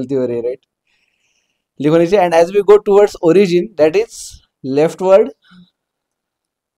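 A man speaks calmly and close to a microphone, explaining in short phrases.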